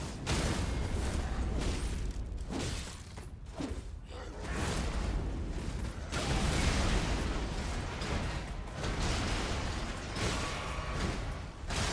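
Magic blasts whoosh through the air.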